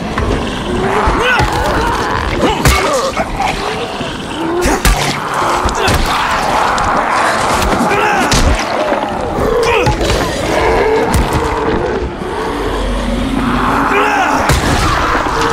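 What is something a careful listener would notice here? Heavy blows thud and squelch against bodies.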